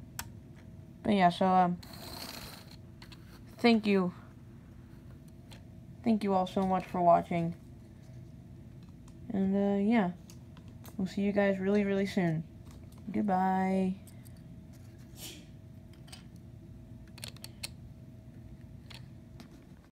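Plastic toy pieces click and clack as they are set down.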